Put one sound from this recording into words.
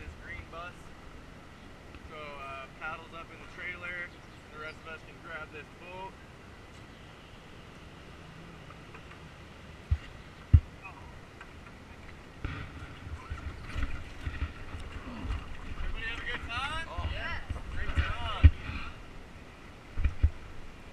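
A river flows and splashes gently.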